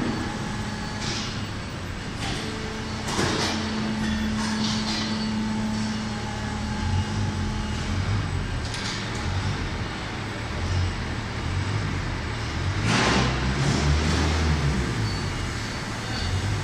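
Machinery hums and rumbles steadily in a large echoing hall.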